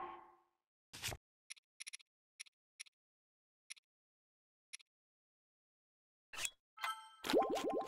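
Short soft clicks tick one after another.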